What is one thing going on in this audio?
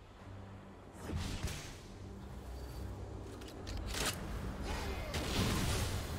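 Magic spell effects whoosh and crackle in short bursts.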